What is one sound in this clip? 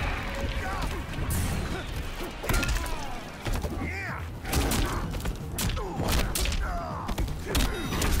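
Heavy punches and kicks land with thuds in a video game fight.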